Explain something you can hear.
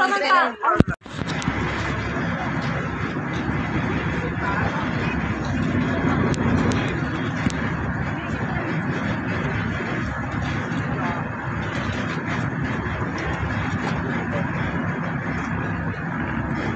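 A boat engine rumbles steadily over choppy water.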